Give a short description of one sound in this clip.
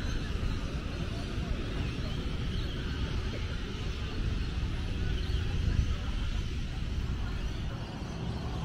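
Small waves wash gently onto the shore in the distance.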